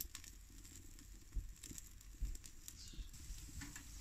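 A metal stove door clanks shut.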